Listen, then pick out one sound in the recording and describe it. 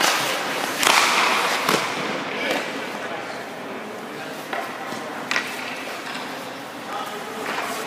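Skate blades scrape and carve across ice in an echoing rink.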